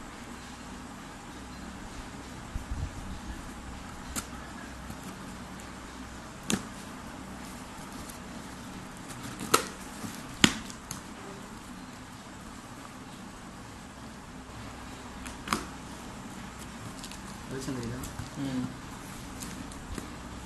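Cardboard rustles and scrapes as hands open a parcel.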